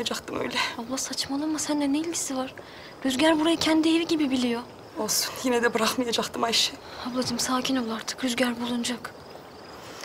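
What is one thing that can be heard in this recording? A young woman speaks softly, trying to comfort, close by.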